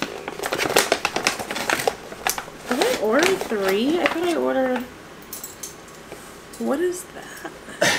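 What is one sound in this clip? A paper bag rustles and crinkles close by.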